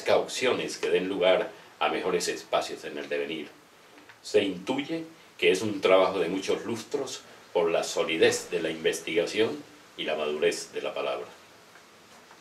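An elderly man reads aloud calmly, close by.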